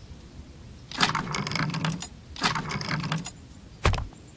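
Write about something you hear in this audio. A well's chain rattles as a bucket is hauled up.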